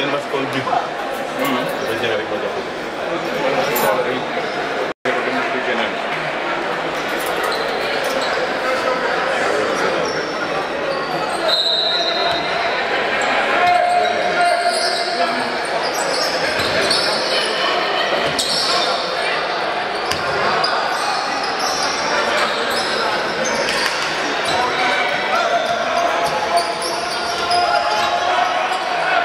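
A crowd chatters and cheers in a large echoing hall.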